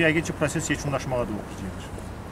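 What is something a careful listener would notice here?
A man speaks calmly close to a microphone outdoors.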